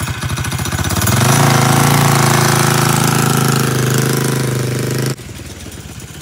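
A small engine revs up and roars as a quad bike drives away.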